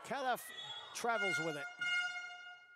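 Sneakers squeak sharply on a hard court floor in an echoing hall.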